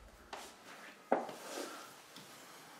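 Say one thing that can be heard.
A sofa cushion thumps as a man sits down heavily.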